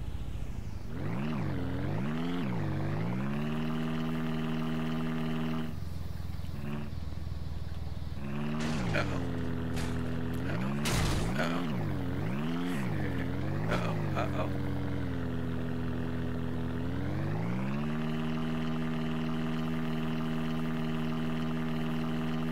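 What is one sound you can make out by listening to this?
A small engine revs up and down, then hums steadily.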